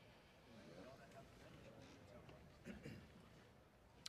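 A crowd of men murmurs in a large room.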